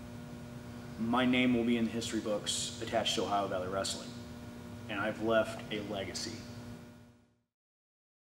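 A young man speaks calmly and close up into a microphone.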